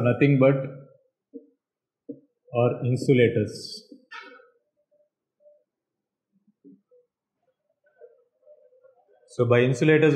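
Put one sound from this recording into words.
A man speaks calmly, pausing between phrases.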